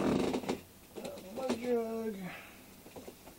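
A young man lets out a drawn-out falling whoop close up.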